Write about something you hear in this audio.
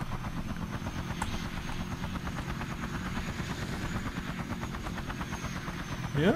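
Small propellers whir with a rapid, steady flutter.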